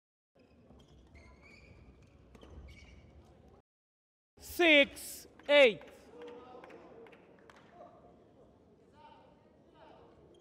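A shuttlecock is struck sharply by rackets.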